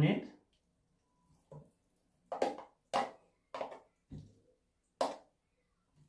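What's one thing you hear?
A thick mixture plops into a glass bowl.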